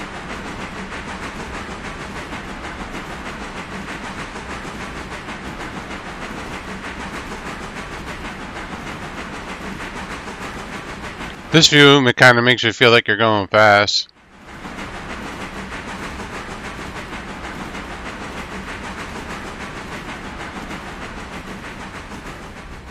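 A steam locomotive rumbles steadily along the track.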